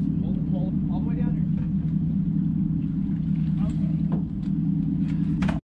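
A boat engine rumbles steadily.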